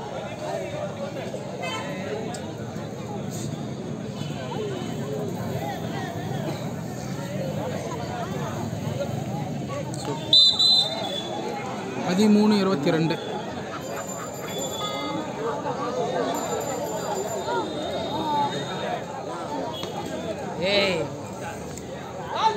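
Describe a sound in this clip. Several young men shout during a game.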